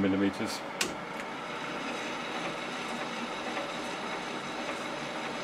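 A small lathe motor starts and hums steadily.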